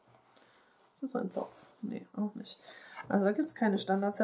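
A woman speaks calmly and close up.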